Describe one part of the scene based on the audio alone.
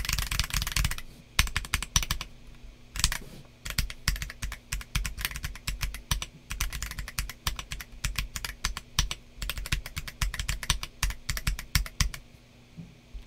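Keys clack rapidly on a mechanical keyboard close by.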